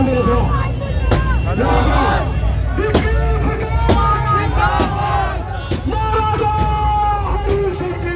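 A large crowd of men chants and cheers loudly outdoors.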